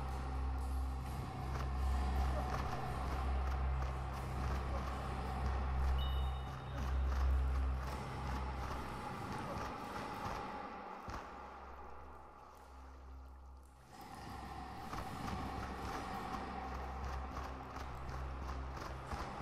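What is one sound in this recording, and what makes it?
Light footsteps patter on stone.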